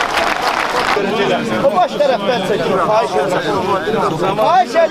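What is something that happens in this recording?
A crowd of men chants loudly in unison.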